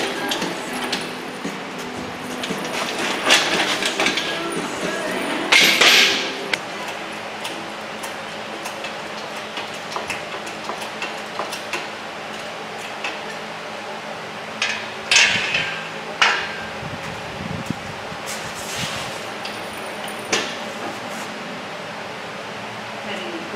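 Metal parts clank and rattle as an engine hoist is moved.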